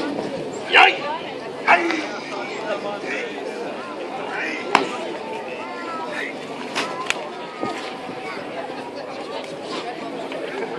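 A crowd chatters outdoors.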